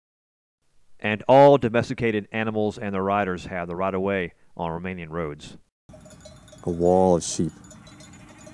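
Sheep bleat.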